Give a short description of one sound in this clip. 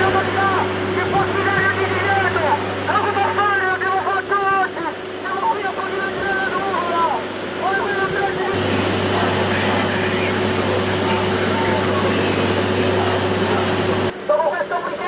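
A crowd of protesters chants loudly outdoors.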